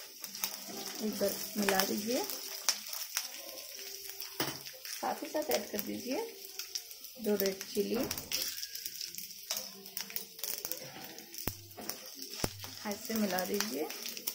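A spatula scrapes and stirs in a frying pan.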